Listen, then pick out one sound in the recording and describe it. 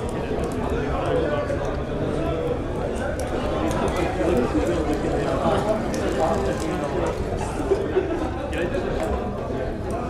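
A crowd of men and women chatters and murmurs indoors.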